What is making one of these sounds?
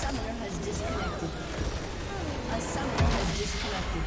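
Game spells crackle and clash in a fight.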